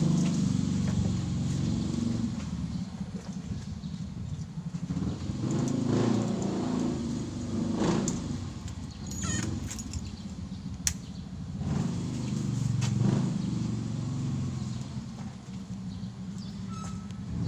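A motorcycle engine idles nearby with a low, uneven rumble.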